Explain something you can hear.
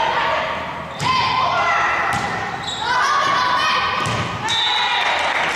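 A volleyball is struck with sharp smacks that echo through a large gym.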